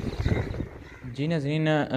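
A man speaks calmly into a microphone close by.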